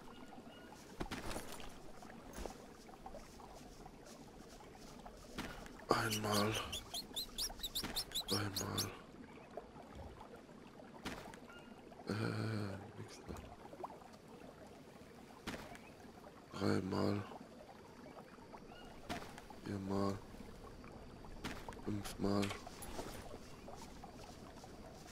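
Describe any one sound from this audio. Soft clicks and clatters sound as gear is moved in and out of a backpack.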